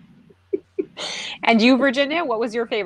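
Women laugh over an online call.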